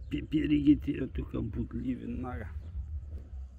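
A man speaks up close with animation.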